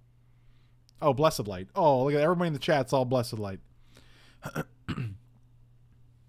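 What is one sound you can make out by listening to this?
A middle-aged man speaks animatedly into a close microphone.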